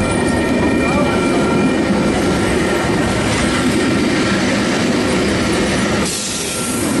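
Steel wheels squeal on the rails.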